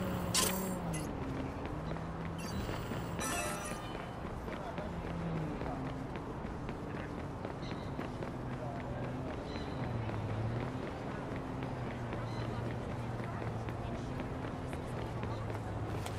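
Quick footsteps run on pavement.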